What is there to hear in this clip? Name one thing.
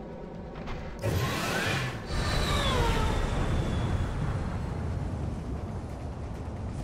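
A powerful energy blast bursts with a loud, rumbling roar.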